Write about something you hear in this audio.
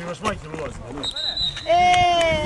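A referee's whistle blows briefly.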